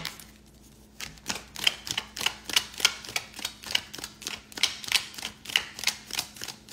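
Trading cards flick and slap against each other as they are shuffled quickly.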